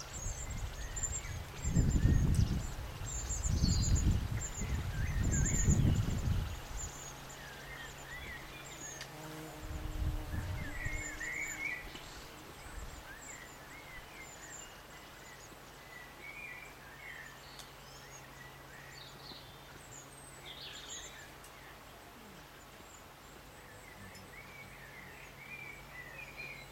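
Wind rustles through leafy trees outdoors.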